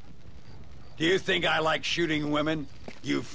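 A second man speaks calmly in a deep voice.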